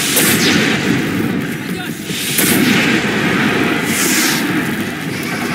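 Explosions boom and burst.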